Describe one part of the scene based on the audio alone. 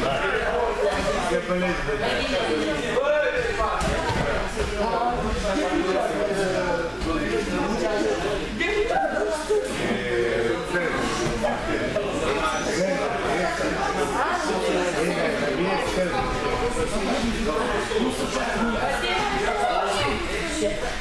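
Bodies thud and shuffle on padded mats as people wrestle.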